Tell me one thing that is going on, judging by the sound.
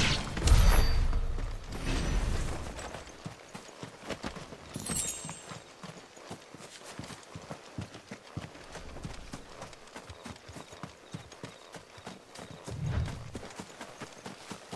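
Footsteps rustle through grass and plants at a steady walking pace.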